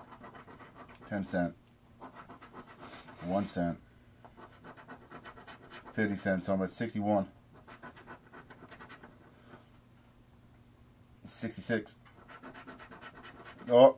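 A coin scratches across a paper card.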